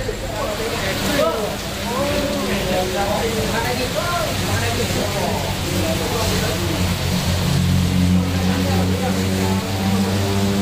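Rain pours down outdoors.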